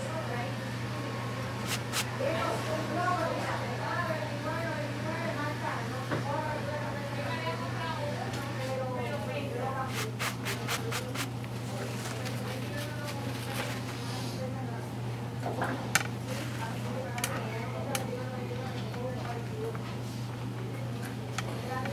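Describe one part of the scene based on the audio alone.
A razor scrapes softly over stubble.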